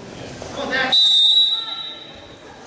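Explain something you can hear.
A loud buzzer sounds briefly.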